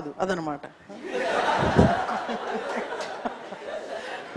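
A group of young people laughs together.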